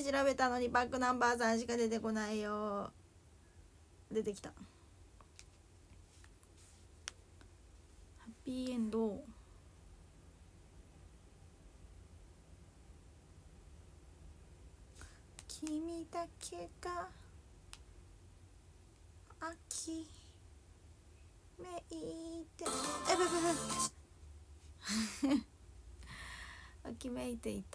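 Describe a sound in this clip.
A young woman speaks close to a microphone, in short bursts with pauses.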